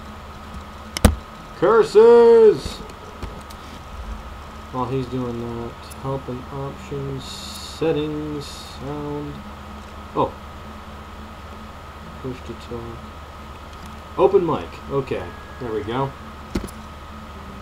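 A menu selection clicks softly.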